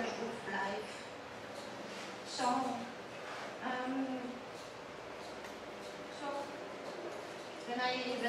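A young woman speaks calmly into a microphone, heard through a loudspeaker in a room.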